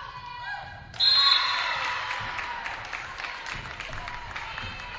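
A small crowd cheers and claps in an echoing gym.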